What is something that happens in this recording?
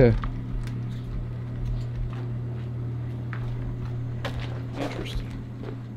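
Footsteps shuffle over a gritty floor.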